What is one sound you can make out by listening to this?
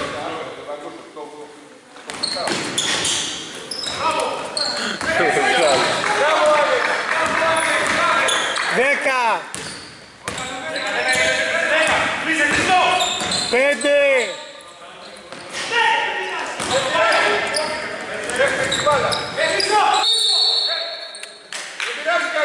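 Basketball players shout and call out to each other in a large echoing hall.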